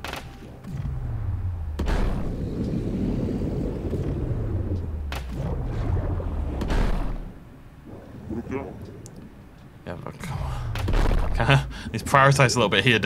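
Deep water rumbles and churns in a low, muffled drone.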